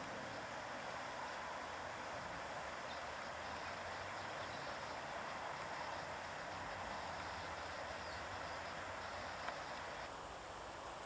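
Water flows gently in a stream.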